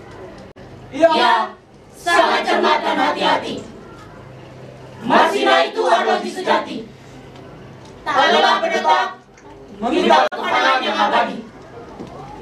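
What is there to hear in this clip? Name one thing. A group of young people chant loudly together in short bursts.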